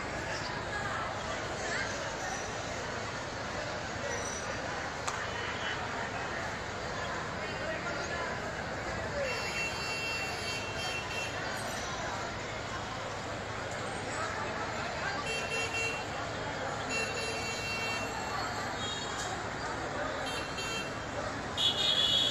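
A large crowd of people chatters and shouts outdoors, heard from a distance.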